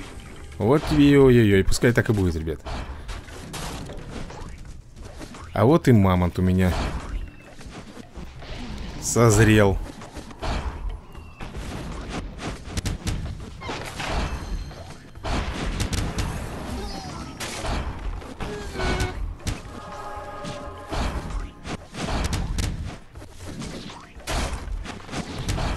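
Blows land with thuds and whacks in quick succession.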